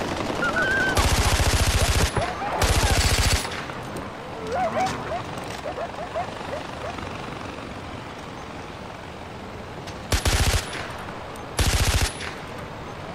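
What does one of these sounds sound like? A gun fires in loud bursts of rapid shots.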